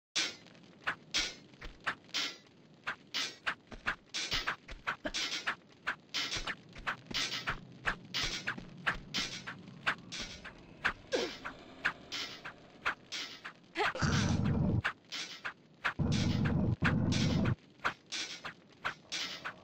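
Footsteps tap quickly and steadily on a stone floor.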